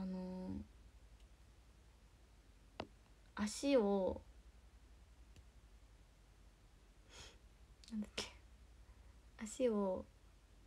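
A young woman speaks close to the microphone in short bursts.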